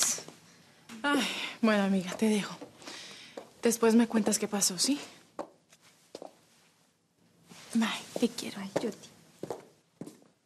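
A second young woman answers in a calm voice.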